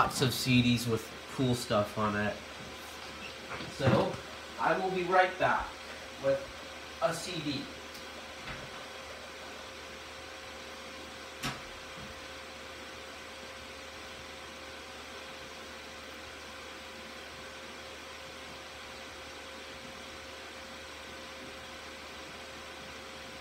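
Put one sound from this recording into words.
A computer hums steadily and quietly.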